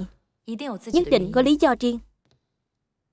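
A man speaks firmly and tensely, close by.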